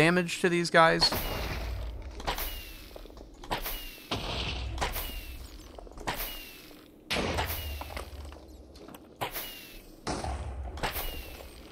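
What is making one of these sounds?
Blows land on creatures in a game with sharp repeated thuds.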